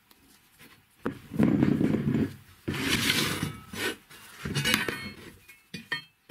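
Metal parts knock and clatter on a wooden bench.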